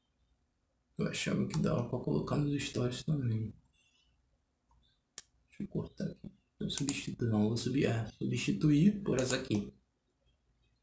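A man speaks calmly and close to a microphone.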